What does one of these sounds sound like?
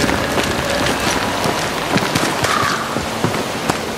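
Footsteps run over soft ground.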